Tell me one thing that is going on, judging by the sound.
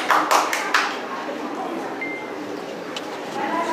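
Flutes play a melody together with strings.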